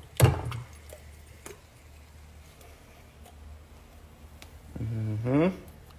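Liquid from a can pours into a pot.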